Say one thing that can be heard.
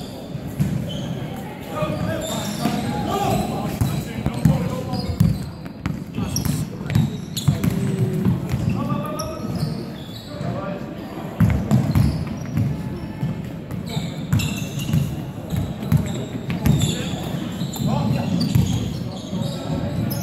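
A basketball bounces on a wooden court in a large echoing hall.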